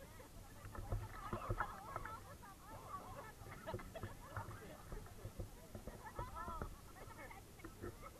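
Young people talk and shout excitedly nearby.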